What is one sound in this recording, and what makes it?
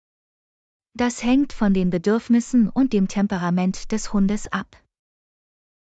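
A woman speaks calmly and clearly, as if reading out.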